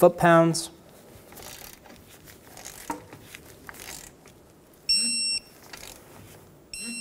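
A ratchet wrench clicks as a bolt is tightened.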